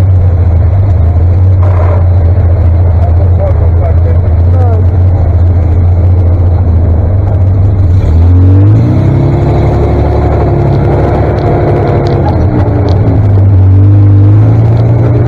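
A tractor engine rumbles loudly close by, revving up as the tractor pulls away.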